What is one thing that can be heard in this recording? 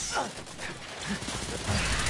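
Automatic rifles fire.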